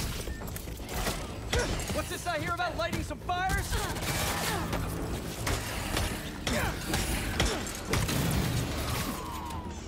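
Energy blasts zap and crackle.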